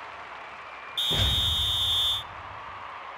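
A referee's whistle blows for kick-off.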